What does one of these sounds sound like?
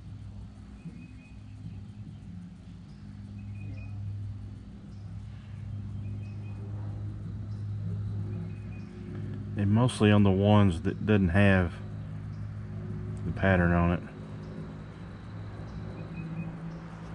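A brush dabs softly against a hard surface.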